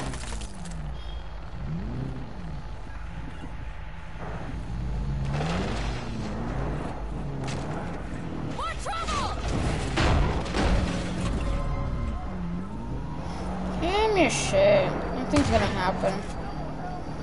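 Tyres crunch and bump over rough dirt and undergrowth.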